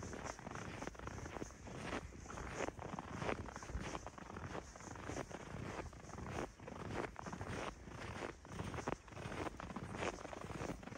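Footsteps crunch steadily through deep snow.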